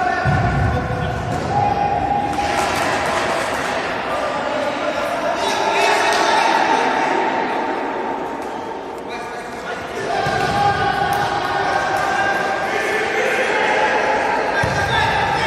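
Shoes squeak on a hard floor in a large echoing hall.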